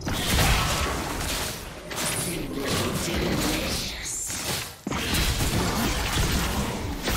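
Magical spell effects whoosh and crackle in quick bursts.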